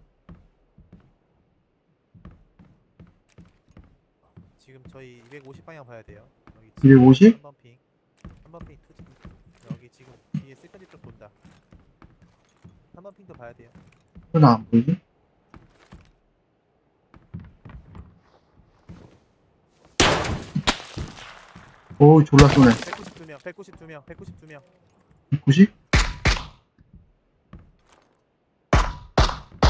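Footsteps creak softly on a wooden floor.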